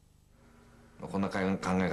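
A middle-aged man speaks calmly, close by.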